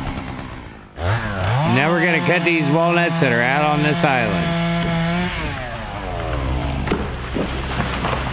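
A chainsaw engine revs up loudly, holds high, then drops to an idle.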